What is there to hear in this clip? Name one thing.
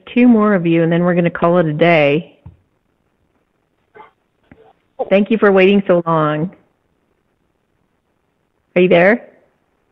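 A woman speaks calmly and close into a microphone, with pauses.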